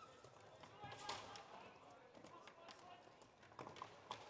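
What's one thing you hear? Hockey sticks clack sharply against each other and a ball.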